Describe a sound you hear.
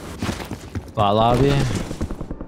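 A young man speaks loudly into a microphone.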